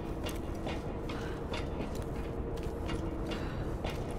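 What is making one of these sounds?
Footsteps clank on a metal grate.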